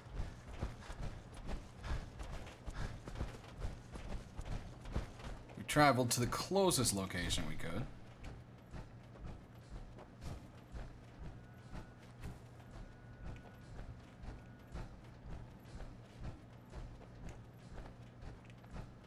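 Heavy metal footsteps thud steadily on the ground.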